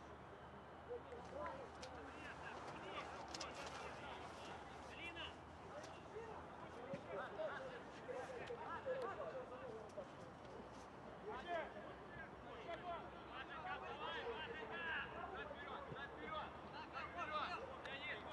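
Young men shout and call to each other across an open outdoor pitch.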